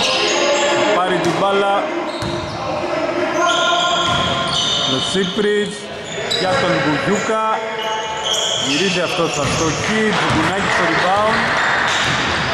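A basketball bounces on the floor in a large echoing hall.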